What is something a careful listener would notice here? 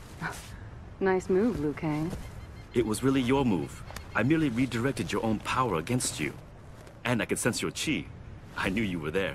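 A young man speaks with emotion, close by.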